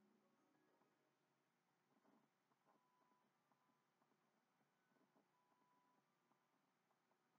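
Soft game music with chiming tones plays quietly through a television speaker.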